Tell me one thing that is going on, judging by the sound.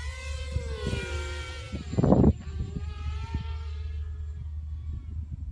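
A small aircraft's engine drones overhead, its pitch slowly falling.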